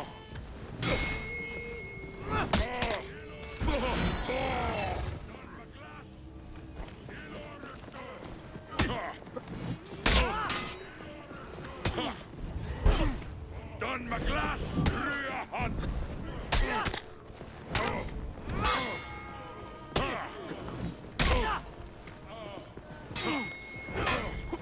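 Heavy blows thud against armour.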